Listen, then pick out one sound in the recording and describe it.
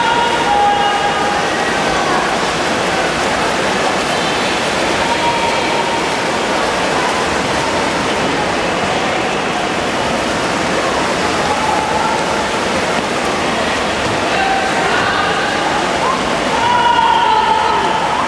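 Swimmers splash through the water in freestyle in an echoing indoor pool.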